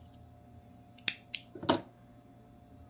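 Small scissors snip thread close by.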